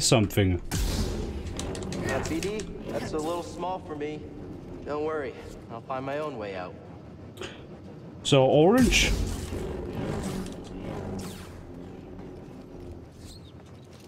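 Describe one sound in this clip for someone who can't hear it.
A lightsaber swooshes and hums as it swings.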